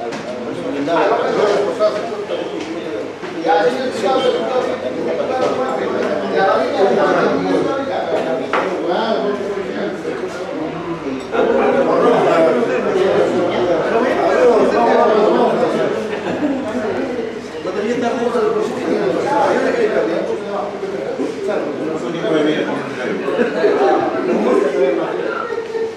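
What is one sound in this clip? Several men talk and chat over one another nearby.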